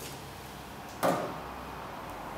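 A board knocks on a table.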